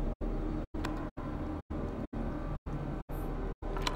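A button clicks as it is pressed.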